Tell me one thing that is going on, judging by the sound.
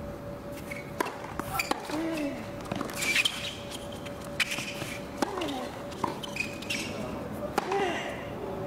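A tennis ball is struck back and forth by rackets with sharp pops.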